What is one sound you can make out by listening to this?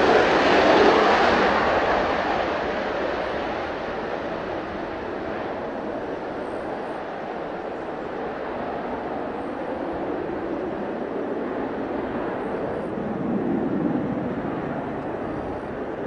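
A jet engine roars loudly as a fighter plane takes off and climbs away, slowly fading.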